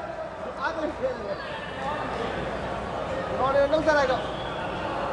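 A man talks in a large echoing hall.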